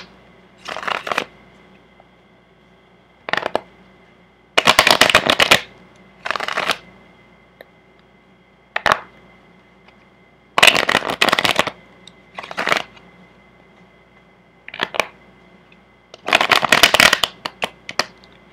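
A deck of cards is shuffled, the cards riffling and snapping together in short bursts.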